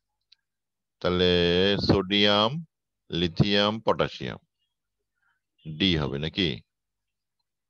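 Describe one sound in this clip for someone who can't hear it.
A man speaks calmly through a microphone, explaining.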